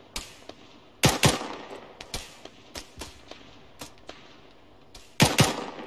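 Rifle shots crack loudly and echo away.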